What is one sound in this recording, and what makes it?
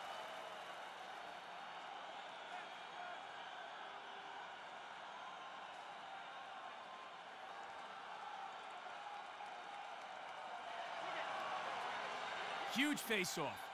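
A stadium crowd murmurs and cheers in the distance.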